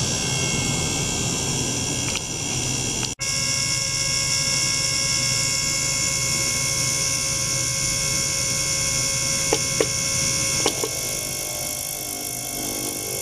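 An ultrasonic cleaner hums steadily with a high whine.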